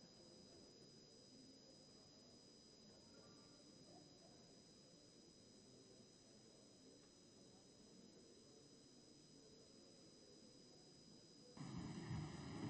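A crowd murmurs quietly in the background.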